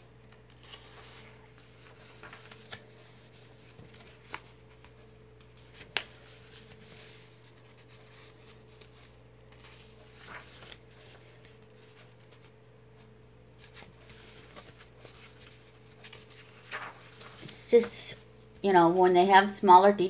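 A book's cover rustles and taps as it is handled.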